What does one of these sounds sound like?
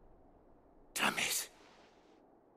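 A young man mutters under his breath.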